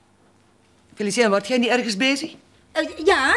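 A middle-aged woman talks calmly, close by.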